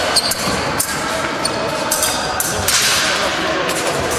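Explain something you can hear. Fencing blades click against each other.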